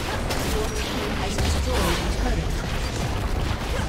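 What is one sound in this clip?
A tower crumbles with a heavy crash in a video game.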